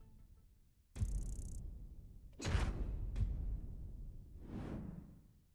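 A deep booming whoosh sounds several times.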